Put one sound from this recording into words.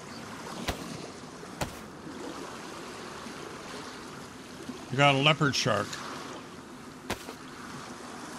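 Waves lap and wash steadily.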